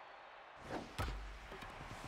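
A bat sharply cracks against a ball.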